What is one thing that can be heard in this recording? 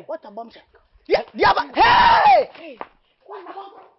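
A man shouts loudly and excitedly close by.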